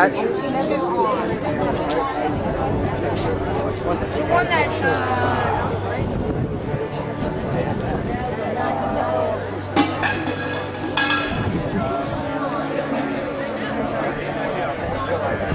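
Adults talk to each other nearby, outdoors.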